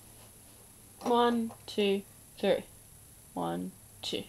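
An electronic keyboard plays single notes, one at a time.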